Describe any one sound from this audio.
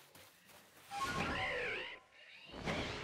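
A large bird lets out a loud, screeching cry.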